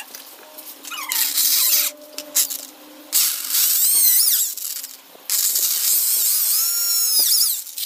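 An electric drill whirs in short bursts, rising and falling in pitch.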